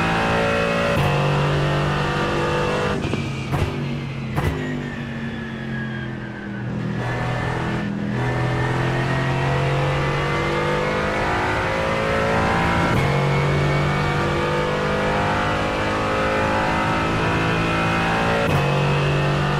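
A gearbox bangs sharply on each gear shift.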